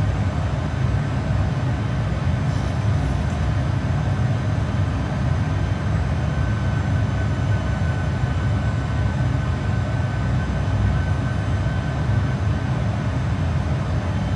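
A steady low roar of jet engines drones in flight.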